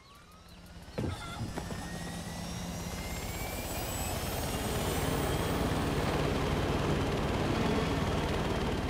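A helicopter engine winds up with a rising whine and a loud rotor roar.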